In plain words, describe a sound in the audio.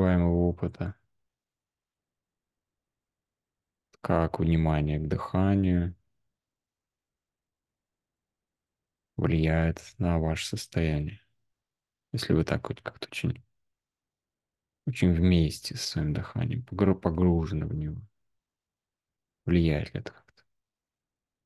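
A man speaks calmly in bursts over an online call.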